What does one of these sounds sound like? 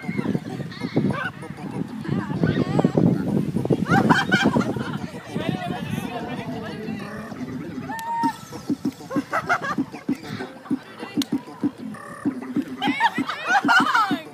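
A group of young women sing and shout together nearby, outdoors.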